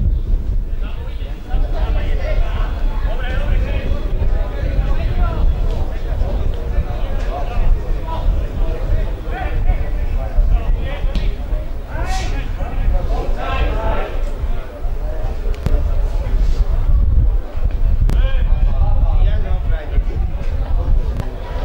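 Men shout and call out across an open sports field.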